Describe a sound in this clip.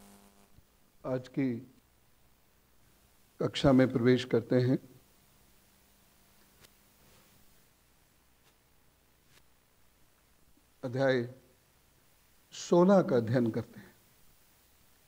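A man speaks calmly into a microphone in short phrases with long pauses.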